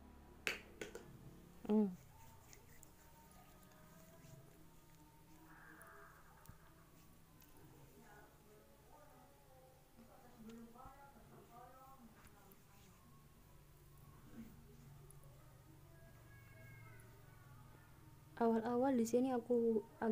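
Hands rub lotion into skin with a soft, slippery swish.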